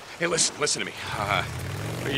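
A motorcycle engine starts and idles.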